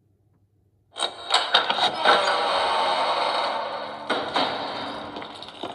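A tablet's speaker plays loud, dense game music that starts suddenly and slowly eases off.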